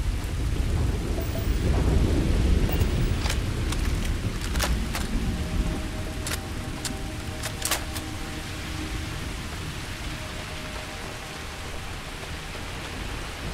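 Footsteps crunch over rocky ground.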